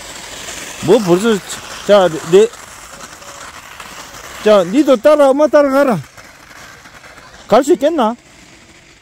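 Skis scrape over snow.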